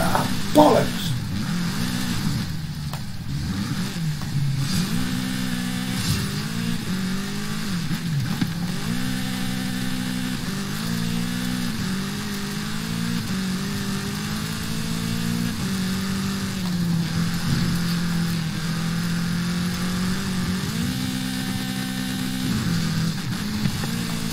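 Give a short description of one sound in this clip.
Tyres skid and scrape on loose dirt.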